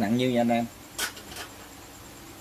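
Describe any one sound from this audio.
A metal tool is set down on a rubber mat with a short knock.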